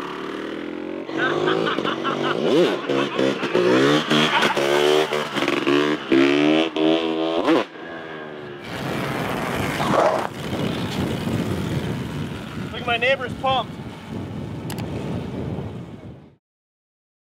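A motorcycle engine revs up and down repeatedly.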